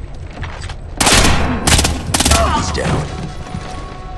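Sparks crackle and burst.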